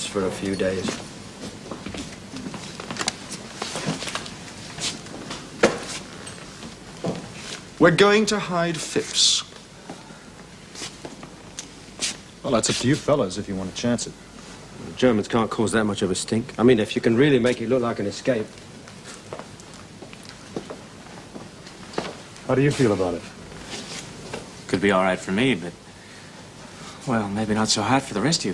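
Men speak in short, tense exchanges close by, with pauses between lines.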